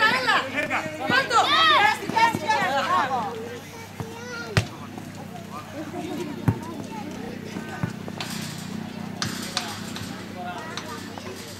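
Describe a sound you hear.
Young children shout and squeal excitedly outdoors.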